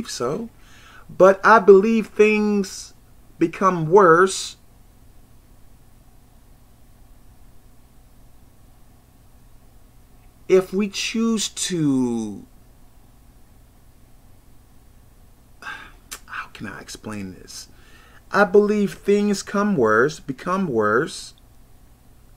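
A man talks to the microphone up close, with animation, in bursts and pauses.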